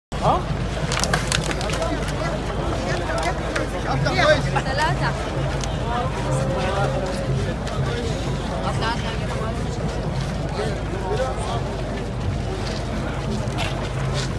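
A large crowd chants and shouts outdoors.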